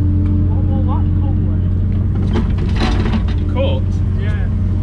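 Soil and stones clatter from an excavator bucket.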